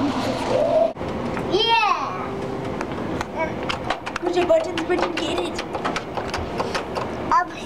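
Arcade machines play loud music and electronic sounds.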